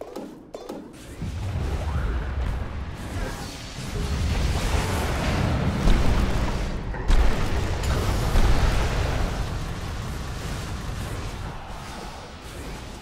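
Game battle effects crash and whoosh loudly.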